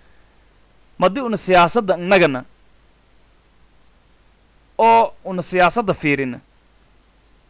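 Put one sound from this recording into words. A young man speaks calmly and clearly into a close microphone, in two short phrases.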